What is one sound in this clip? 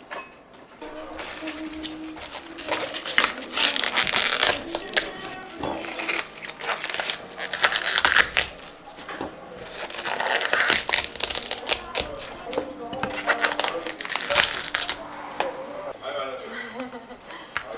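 Hands tear and snap leaves off a cauliflower.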